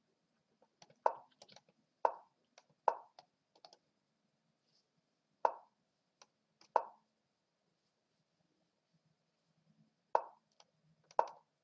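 Sharp clicks sound now and then as chess pieces are moved.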